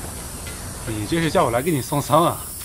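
Two young men talk loudly.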